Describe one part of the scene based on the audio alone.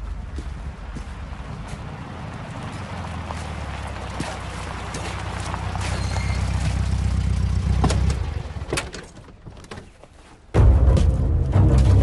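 Boots step on wet, muddy ground.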